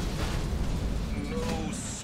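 A fiery beam roars.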